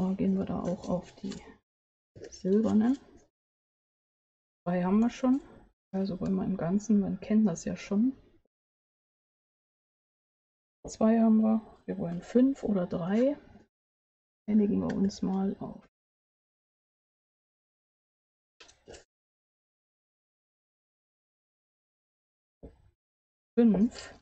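A woman talks calmly into a close microphone, explaining in bursts with pauses.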